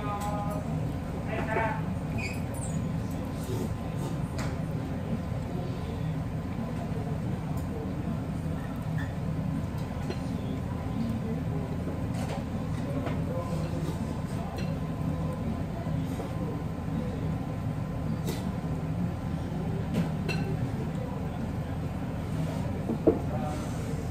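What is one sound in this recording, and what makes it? Chopsticks clink lightly against a bowl.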